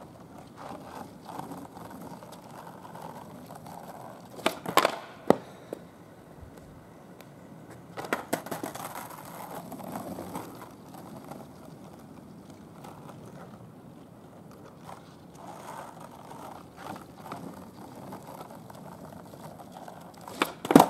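Skateboard wheels roll and rumble on asphalt.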